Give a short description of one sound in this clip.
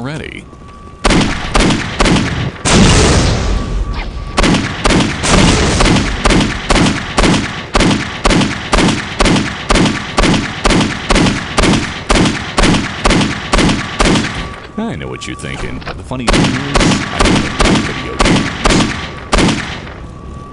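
A pistol fires shot after shot in rapid bursts.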